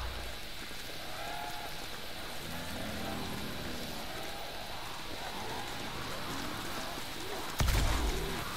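Zombies groan and snarl close by.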